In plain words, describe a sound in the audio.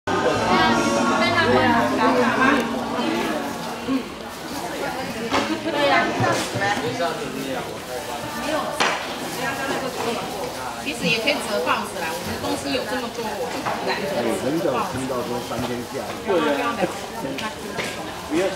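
Several men and women chat nearby in overlapping voices.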